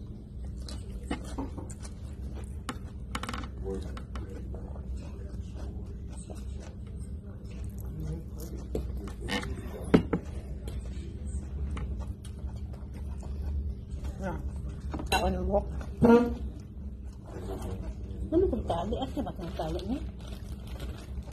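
A woman talks casually nearby.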